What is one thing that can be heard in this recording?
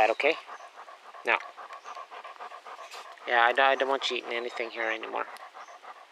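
A dog pants softly close by.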